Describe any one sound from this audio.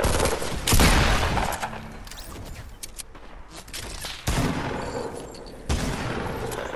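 Gunshots crack loudly a few times.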